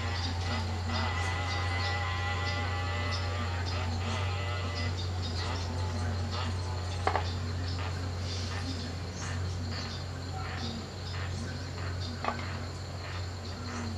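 Leafy branches rustle and snap as a woman pulls them down.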